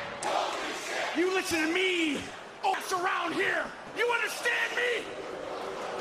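A younger man speaks forcefully into a microphone.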